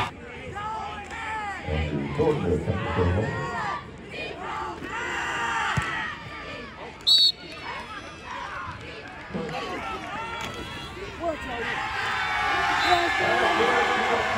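A crowd in outdoor stands cheers and shouts.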